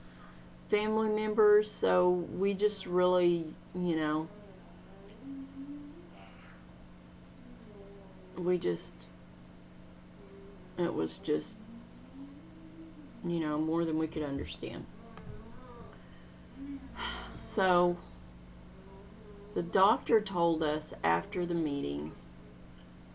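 A middle-aged woman speaks calmly and thoughtfully into a close microphone, with pauses.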